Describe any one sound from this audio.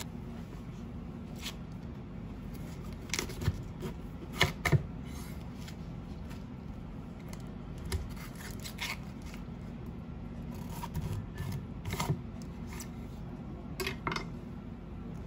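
A knife cuts through a cauliflower with a crunchy snap.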